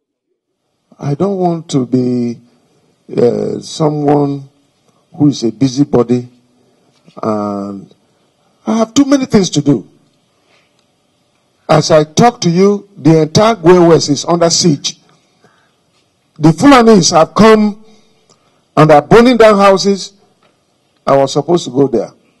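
An elderly man speaks forcefully into a microphone, in short bursts with pauses.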